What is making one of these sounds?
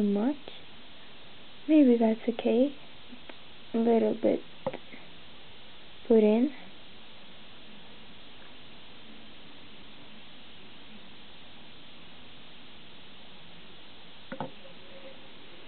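A plastic spoon scrapes and taps against a plastic dish.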